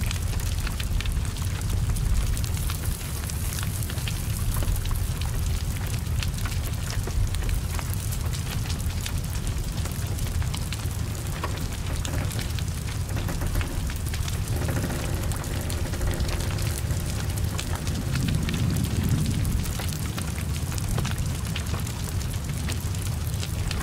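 A car fire roars and crackles steadily.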